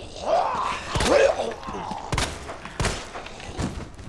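A pistol fires several sharp, loud shots.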